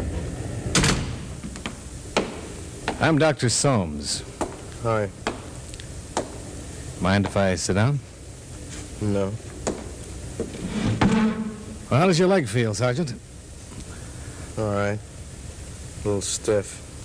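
A man speaks with expression, heard through an old radio broadcast.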